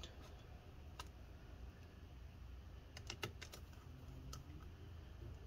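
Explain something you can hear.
Plastic clicks and taps as hands handle a laptop battery.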